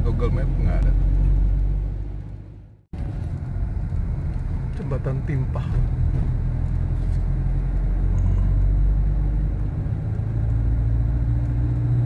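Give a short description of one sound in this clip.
A car drives along a paved road, its engine and tyres rumbling as heard from inside the car.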